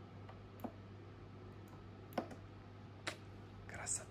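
Fingers tap plastic buttons with soft clicks.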